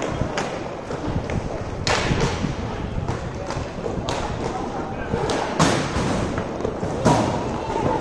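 Roller skate wheels roll and scrape on a hard rink floor.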